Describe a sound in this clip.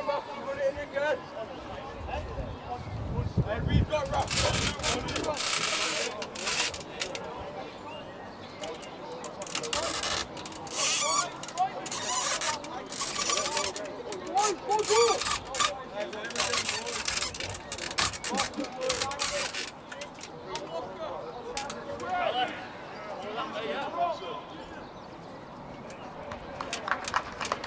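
Players shout and call to each other at a distance outdoors.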